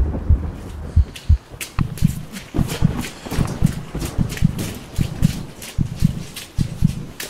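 Footsteps run quickly along a dirt path.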